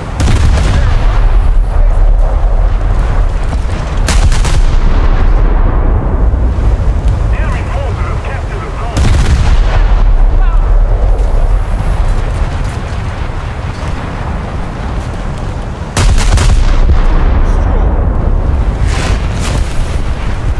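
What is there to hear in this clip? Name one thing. Heavy naval guns fire in loud booming blasts.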